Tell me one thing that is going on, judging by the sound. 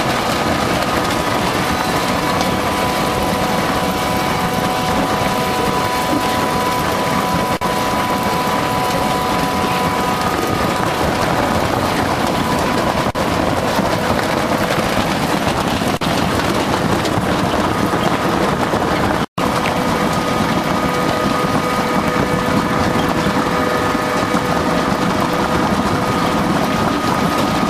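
A machine rattles and hums steadily.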